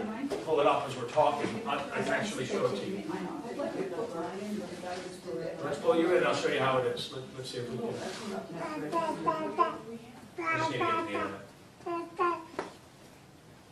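A middle-aged man speaks calmly into a microphone in an echoing room.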